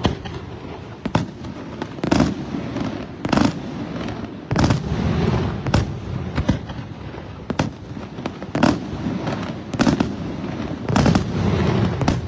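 Fireworks crackle and fizzle after bursting.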